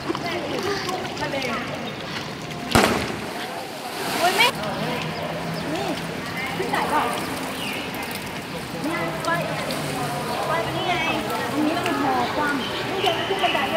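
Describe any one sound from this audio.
A group of young men and women talk and call out nearby, in a wide open space.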